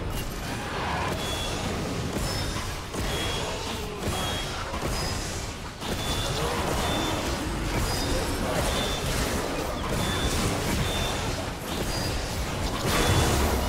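Game spell effects whoosh and crackle as characters battle.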